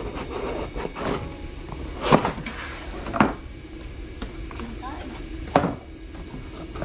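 Cardboard rustles and thumps as a box is handled.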